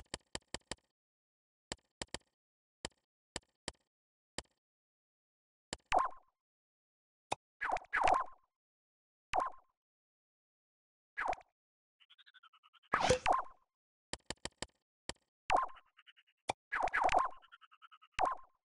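Short interface clicks tick rapidly as a menu cursor moves.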